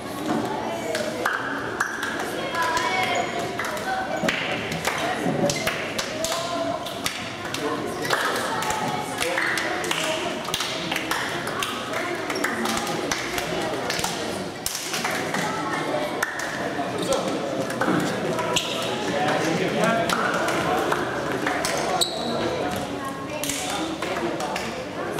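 Players' hands slap together as they shake hands.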